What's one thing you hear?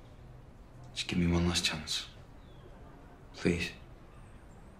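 A young man speaks quietly and hesitantly.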